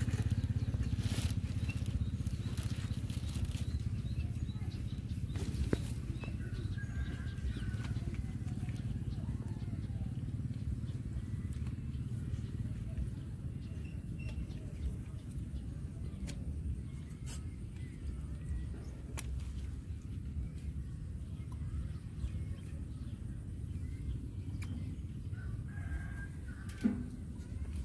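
Grass rustles as a young monkey and a puppy tussle.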